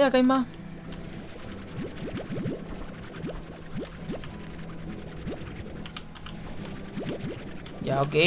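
A game's suction gun whooshes as it sucks up fruit.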